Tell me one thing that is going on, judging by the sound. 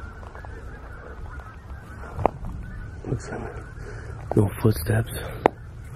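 Footsteps crunch through snow outdoors.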